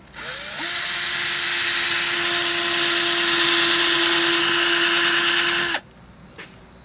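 A cordless drill whirs steadily as it bores into wood.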